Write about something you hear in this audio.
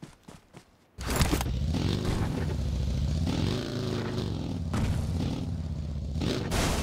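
A buggy engine revs and drones loudly.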